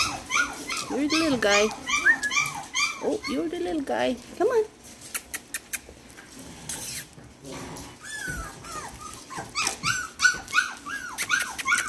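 Puppies squeak and whine in high, repeated cries close by.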